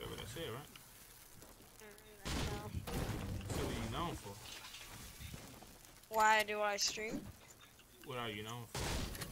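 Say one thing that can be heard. A young man talks into a microphone.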